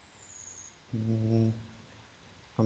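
A young man speaks briefly through a headset microphone.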